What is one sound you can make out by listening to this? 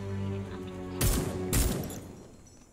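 A rifle fires two loud shots in quick succession.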